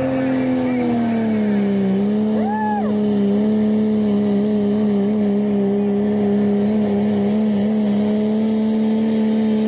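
Tyres grind and rumble over dirt.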